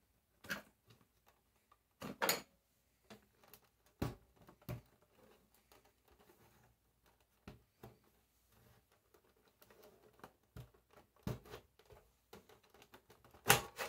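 Hands knock and rattle a plastic casing.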